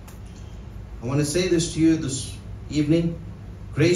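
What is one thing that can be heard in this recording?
A man speaks calmly into a microphone, close and clear.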